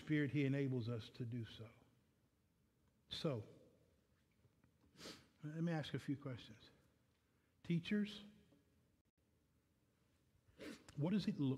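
A man speaks calmly through a microphone, in phrases with pauses.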